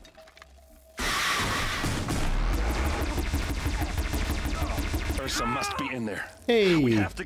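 A weapon fires with a loud, crackling energy burst.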